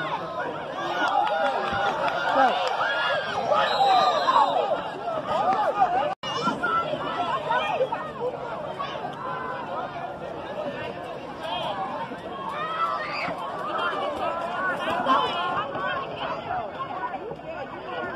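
A crowd of spectators cheers and shouts outdoors, with a sudden cut partway.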